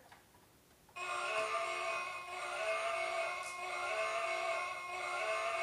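A toy truck plays a tinny electronic tune from a small speaker.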